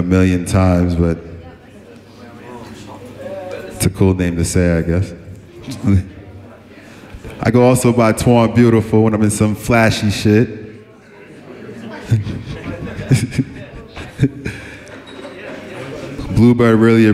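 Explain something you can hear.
A man raps loudly into a microphone, heard over a loudspeaker.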